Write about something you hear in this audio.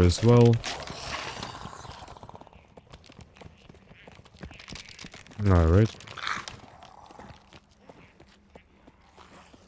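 Footsteps crunch on icy ground.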